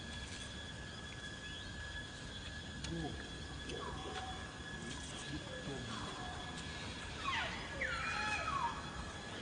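A monkey chews food softly.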